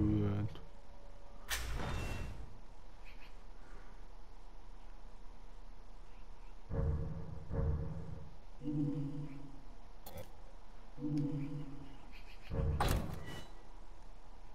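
Soft menu tones beep as selections change.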